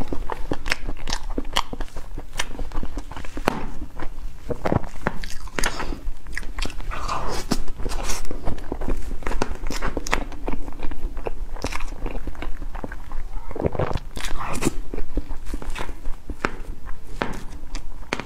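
A spoon scrapes and squishes through soft cake cream.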